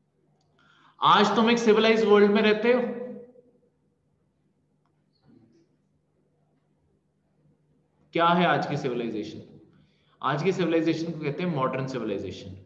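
A man speaks calmly through a microphone, explaining in short bursts with pauses.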